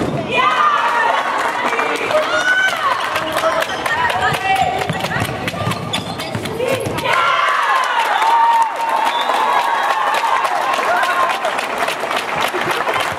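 A ball bounces on the floor.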